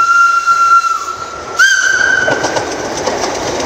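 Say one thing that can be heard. A train horn sounds.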